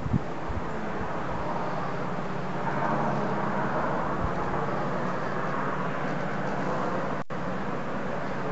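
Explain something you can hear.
Leaves rustle in the wind.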